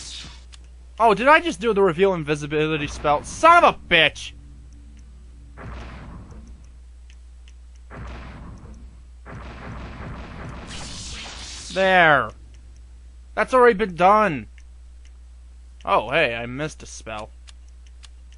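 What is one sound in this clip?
Magical tones swoop and shimmer in short bursts.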